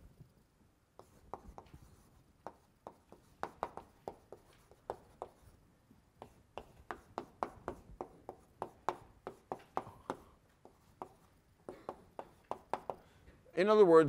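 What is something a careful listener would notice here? Chalk taps and scrapes quickly on a blackboard.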